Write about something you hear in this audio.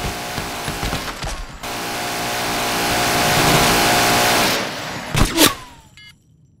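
Heavy gunfire roars loudly and then cuts off abruptly.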